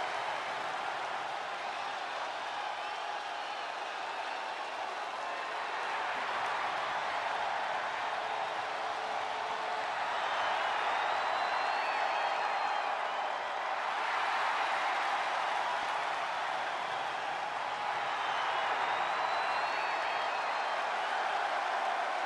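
A large crowd cheers and roars loudly throughout, swelling at times.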